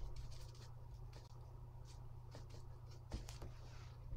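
A brush dabs and scrubs in wet paint.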